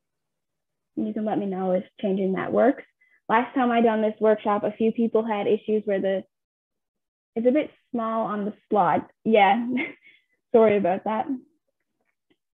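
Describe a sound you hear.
A woman speaks calmly through a computer microphone, as if on an online call.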